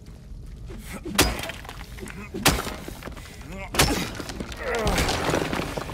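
A metal pipe strikes hard against something, with loud clangs.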